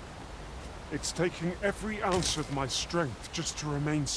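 A man speaks calmly and earnestly up close.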